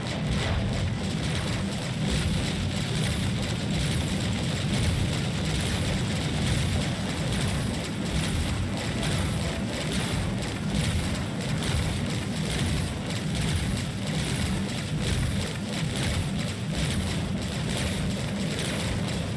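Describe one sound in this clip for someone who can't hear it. Laser cannons fire in rapid bursts.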